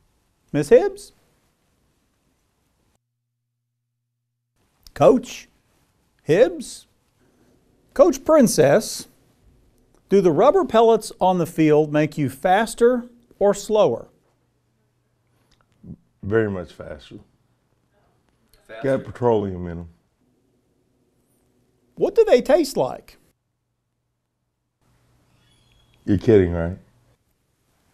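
A man speaks clearly into a microphone in short, deliberate phrases.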